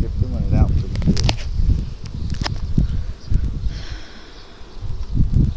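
A wooden hive frame scrapes as it is pried loose and lifted.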